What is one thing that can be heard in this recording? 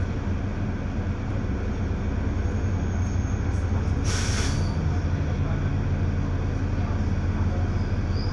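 Cars pass by on the road nearby.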